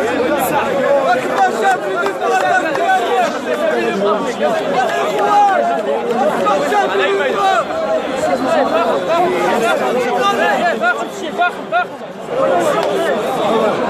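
A large crowd of men chants and shouts loudly outdoors.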